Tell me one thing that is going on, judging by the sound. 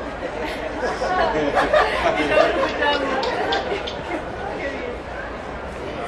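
A group of men laugh together.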